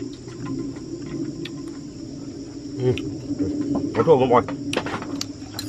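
A middle-aged man talks casually up close.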